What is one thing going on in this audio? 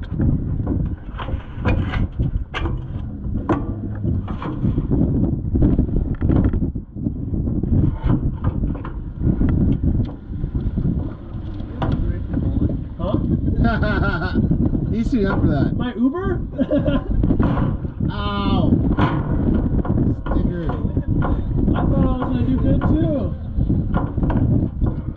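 A vehicle rattles and bumps over rough ground.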